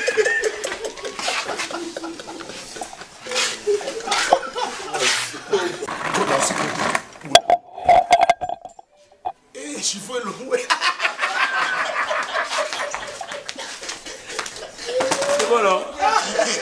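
A group of men laugh together outdoors.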